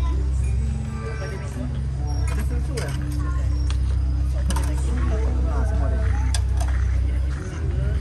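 People chatter in the street outdoors.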